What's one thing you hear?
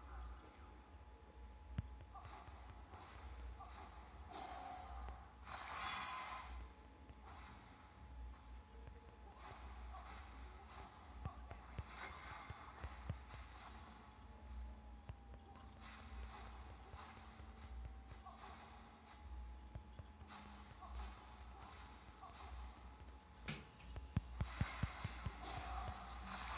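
Game sound effects of spells and hits play with bursts and clicks.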